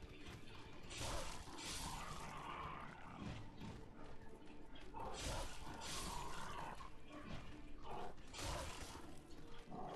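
A sword swings and strikes with sharp bursts of noise.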